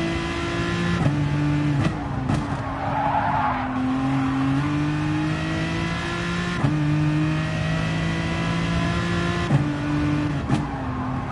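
A racing car engine roars and whines, shifting gears as it speeds up and slows down.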